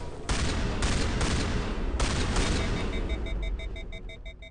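Gunshots and blasts boom in rapid bursts.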